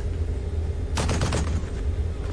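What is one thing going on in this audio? A tank cannon fires with a loud blast.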